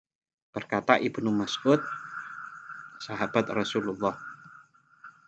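A man speaks calmly and clearly into a microphone, heard as if through an online call.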